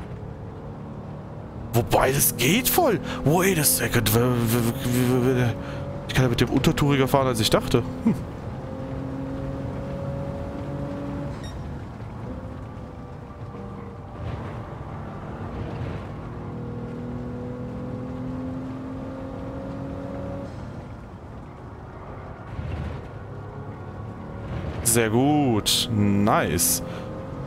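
A racing car engine drones and revs up and down through gear changes.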